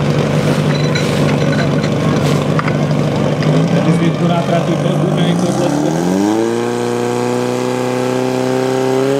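A pump engine runs loudly, then revs up to a higher steady drone.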